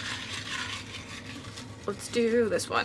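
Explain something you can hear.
Paper slips rustle in a jar.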